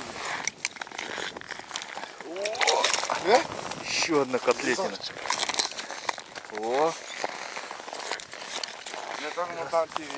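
Boots crunch on packed snow.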